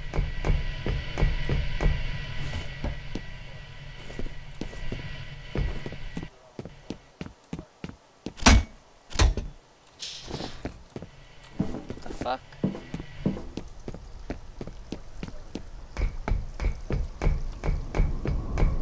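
Footsteps clank on a metal walkway.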